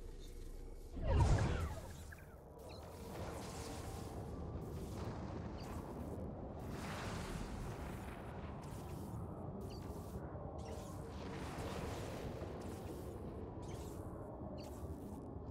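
A storm's wind roars and crackles loudly.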